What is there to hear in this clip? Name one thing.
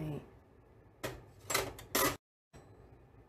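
Metal utensils clatter in a plastic dish rack.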